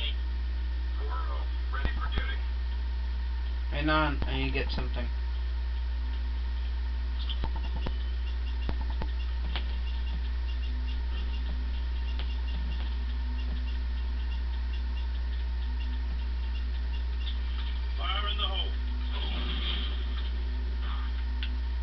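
Video game sound effects play through a television speaker.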